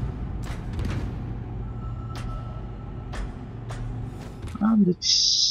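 Heavy metallic footsteps clank on a metal floor.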